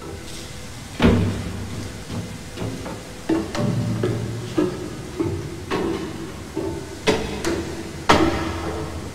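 Heavy footsteps clang on metal stairs.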